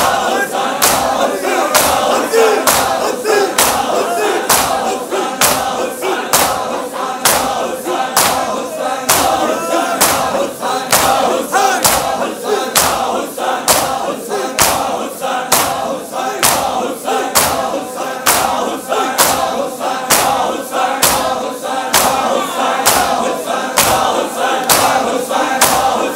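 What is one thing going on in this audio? A large crowd of men chant loudly together.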